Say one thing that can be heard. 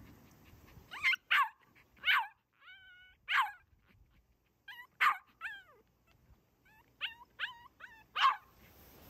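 A small dog barks sharply, again and again.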